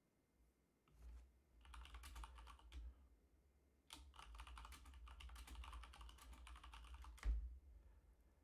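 Keys clatter rapidly on a keyboard.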